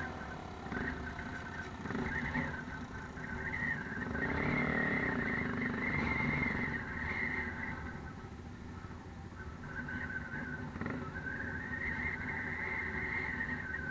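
A quad bike engine drones nearby.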